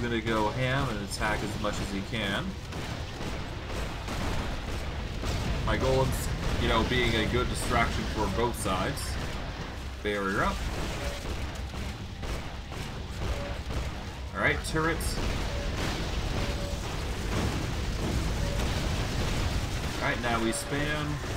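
Magic blasts crackle and explode during a fast fight.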